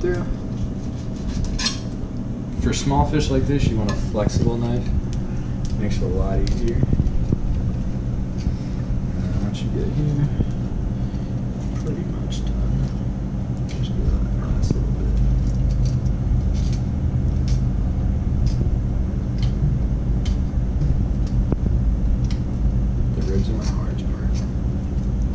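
A knife scrapes and cuts through a fish with soft, scratchy strokes.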